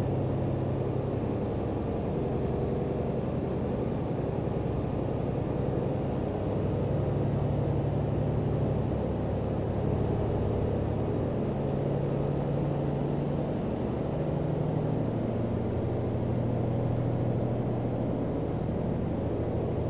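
A truck engine drones steadily, shifting slightly in pitch as it drives.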